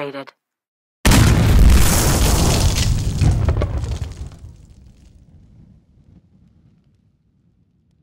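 A loud explosion booms and slowly rumbles away.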